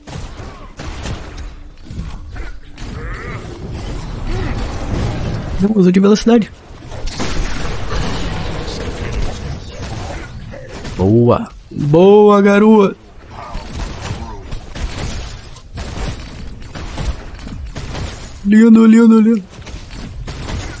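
Gunfire and ability effects from a fantasy combat game play.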